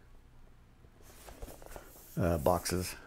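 A cardboard record sleeve rustles as it is handled.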